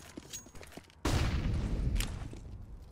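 A grenade bursts with a loud bang.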